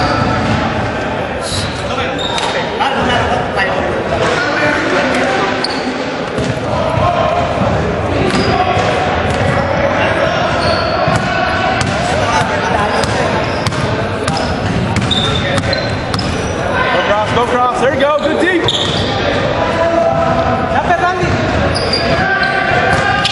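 A crowd of people talks and calls out in a large echoing hall.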